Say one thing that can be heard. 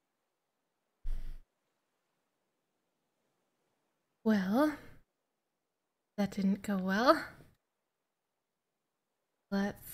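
A woman speaks expressively into a close microphone, in short bursts with pauses.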